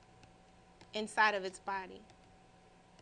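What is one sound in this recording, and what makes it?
A young woman speaks briefly and calmly into a microphone.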